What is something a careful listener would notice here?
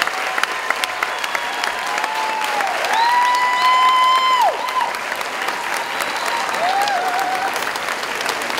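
A crowd cheers and whistles shrilly.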